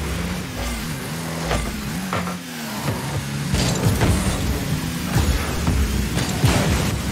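A video game car engine hums and revs.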